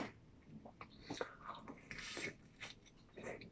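A man bites into a sandwich.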